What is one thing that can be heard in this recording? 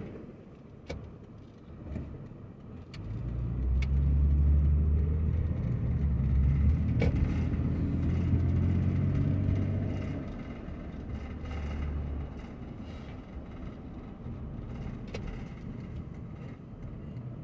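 Tyres roll on a paved road.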